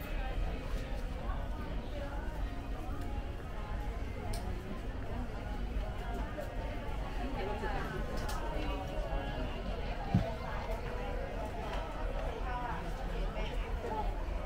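Indistinct voices of men and women murmur at a distance.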